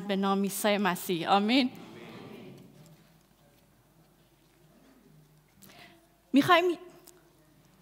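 A young woman sings close to a microphone.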